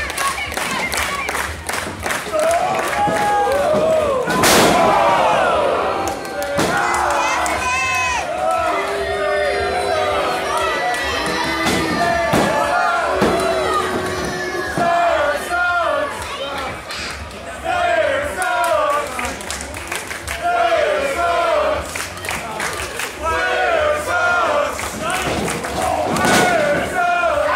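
A crowd in a large hall shouts and cheers.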